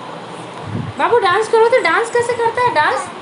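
A toddler babbles and chatters close by in a high voice.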